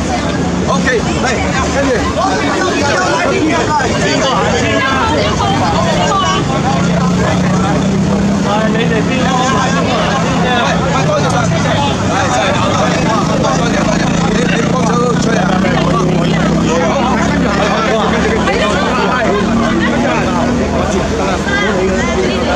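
A crowd of men and women chatter loudly all around outdoors.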